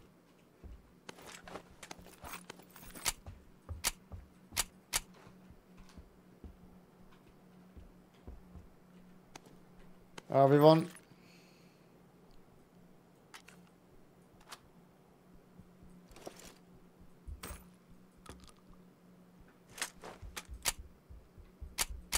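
Short clicks and clatters sound as gear is picked up and moved around.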